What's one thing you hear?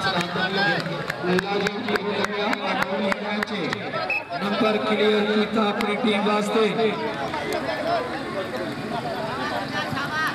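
A large outdoor crowd murmurs and calls out.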